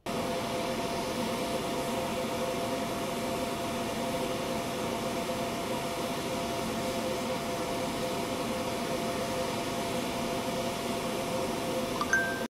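A gas torch flame roars steadily.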